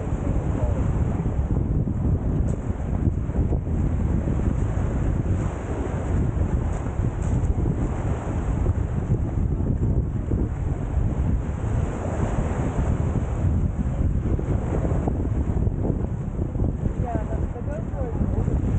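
Small waves lap gently on a pebbly shore.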